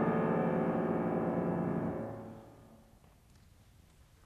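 A grand piano plays a chord that rings out and fades in a large hall.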